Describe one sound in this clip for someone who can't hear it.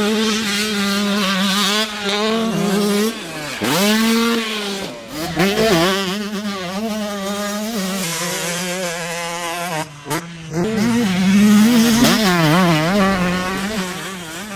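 A dirt bike engine revs and roars, rising and falling in pitch.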